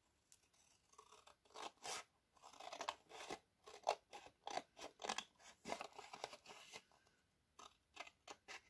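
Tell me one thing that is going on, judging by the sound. Scissors snip through thick paper.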